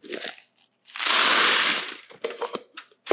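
Small round beads pour and rattle into a foil-lined dish.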